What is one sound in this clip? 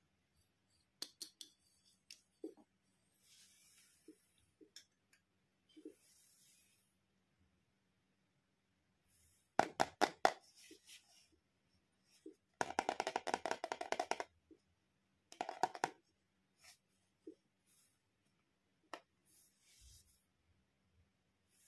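Plastic toys clack against each other.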